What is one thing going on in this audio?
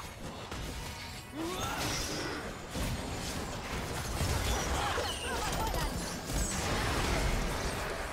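Magic blasts burst and explode.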